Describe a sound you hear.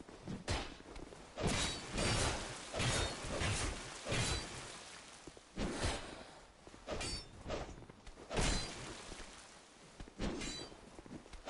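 A sword slashes and strikes with sharp, ringing metallic hits, again and again.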